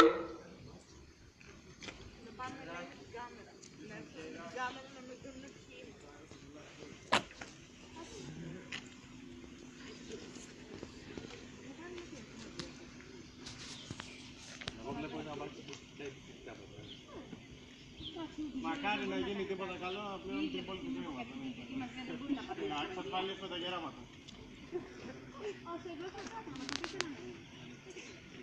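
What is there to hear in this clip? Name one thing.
A crowd of young people talks and murmurs nearby outdoors.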